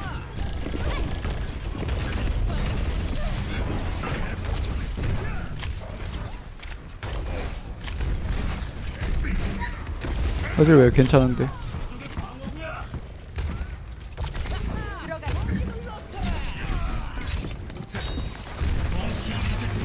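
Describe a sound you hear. Video game gunfire crackles in rapid bursts.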